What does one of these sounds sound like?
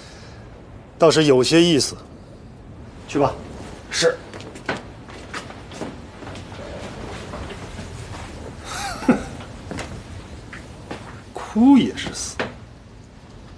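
An older man speaks firmly, close by.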